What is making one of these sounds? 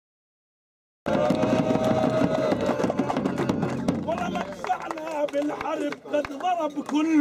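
A hand drum beats.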